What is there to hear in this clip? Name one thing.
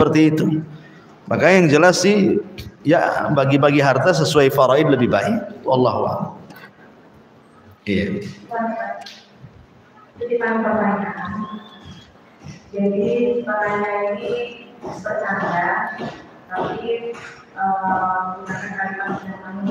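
A man chants in a melodic voice close to a microphone, with short pauses between phrases.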